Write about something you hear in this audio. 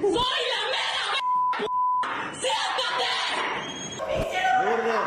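A woman shouts angrily in an echoing room.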